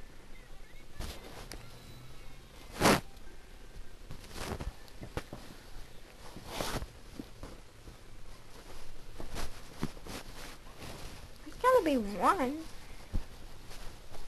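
Plastic toys rattle and knock in a box being handled.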